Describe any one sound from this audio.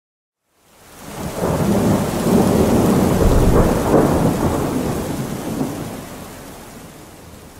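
Thunder rumbles loudly overhead, then slowly fades.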